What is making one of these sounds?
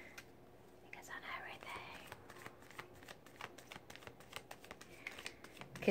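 Playing cards shuffle and rustle.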